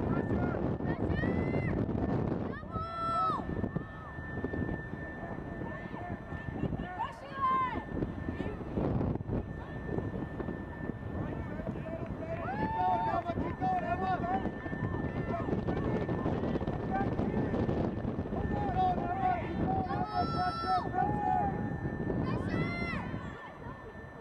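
Young women shout across an open field from a distance.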